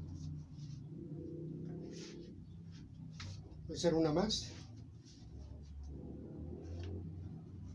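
Paper sheets rustle and flap as they are handled.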